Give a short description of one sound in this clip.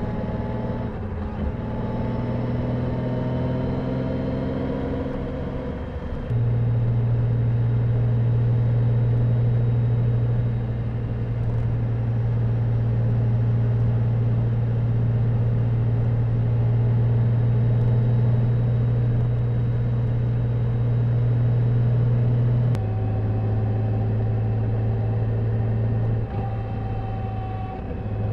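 A motorcycle engine hums steadily at highway speed.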